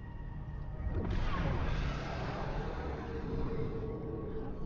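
A spaceship engine roars past with a rushing whoosh.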